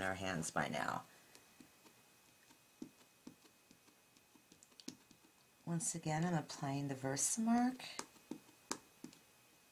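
An ink pad taps lightly against plastic.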